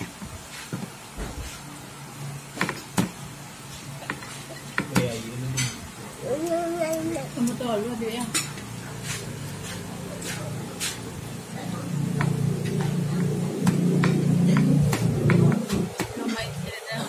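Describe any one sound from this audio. Fingers tap and scrape on a plate.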